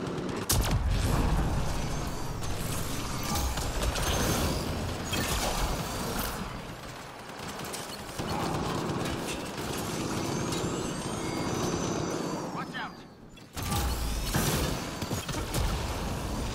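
Energy beams zap and whine.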